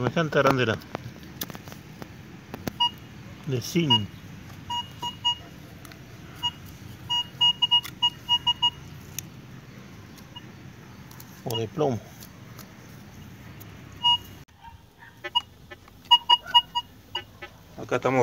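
A metal detector beeps in short, quick bursts.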